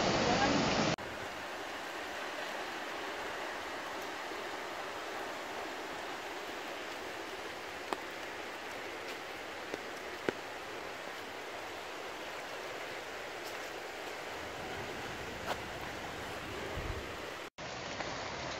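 A river flows steadily, softer and farther off.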